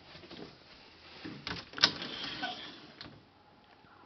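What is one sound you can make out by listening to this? A louvered wooden closet door rattles and clacks as it slides open.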